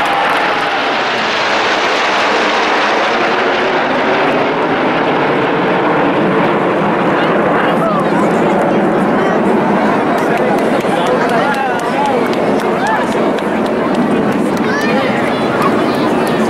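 Jet aircraft roar loudly overhead.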